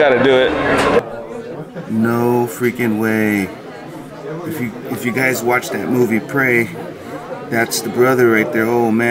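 A crowd of people chatters indoors.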